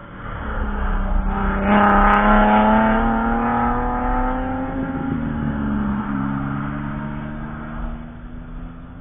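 A race car engine roars loudly as the car speeds past close by.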